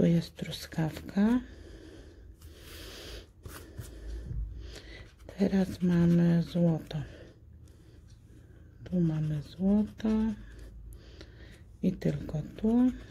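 Something scratches softly across a scratch card.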